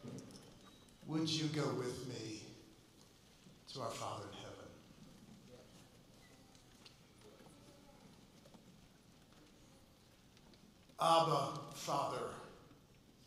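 A man speaks slowly and calmly into a microphone, heard over loudspeakers.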